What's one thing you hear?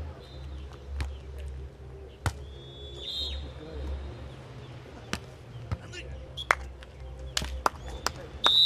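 A volleyball is struck with sharp slaps of hands.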